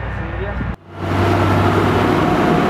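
A forage harvester roars loudly.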